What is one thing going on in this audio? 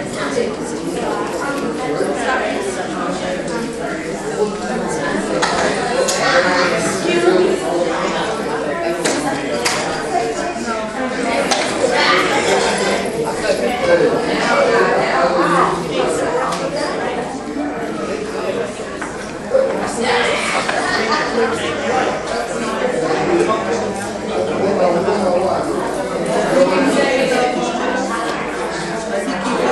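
A crowd of men and women talk and murmur in a large echoing hall.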